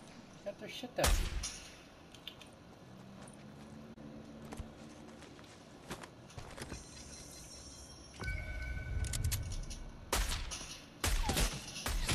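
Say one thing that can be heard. A sniper rifle fires loud, sharp shots.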